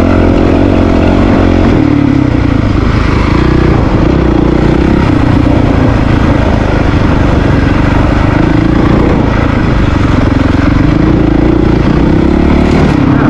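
Tyres roll over a dirt trail.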